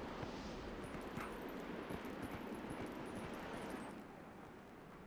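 Footsteps thud quickly across a wooden bridge.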